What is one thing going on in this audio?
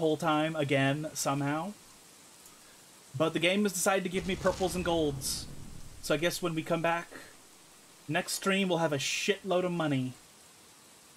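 A man talks calmly into a microphone in short bursts.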